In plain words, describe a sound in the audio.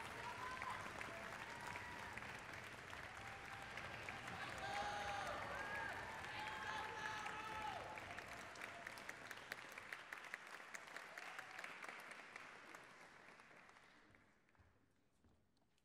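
An audience applauds loudly in a large echoing hall and slowly fades.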